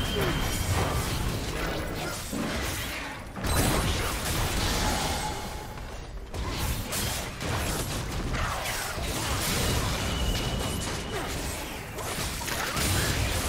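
Game spells and weapon blows clash and burst in a busy battle.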